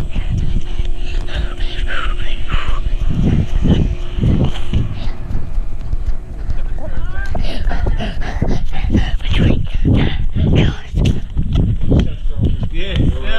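A young boy pants as he runs.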